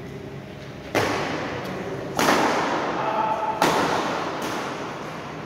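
Badminton rackets strike a shuttlecock with sharp pops in an echoing hall.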